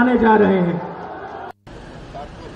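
A man speaks loudly into a microphone, his voice carried over loudspeakers.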